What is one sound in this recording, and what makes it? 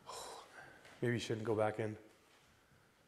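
A man speaks out loudly in a quiet, echoing room.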